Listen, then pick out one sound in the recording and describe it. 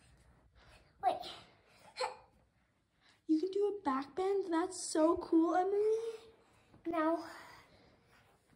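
A young girl squeals and calls out playfully nearby.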